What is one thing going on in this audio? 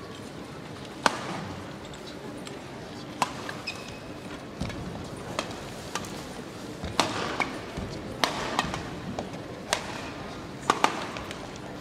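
Rackets strike a shuttlecock back and forth in a rally.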